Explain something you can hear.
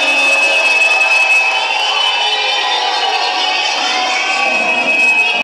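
A man raps into a microphone through loudspeakers.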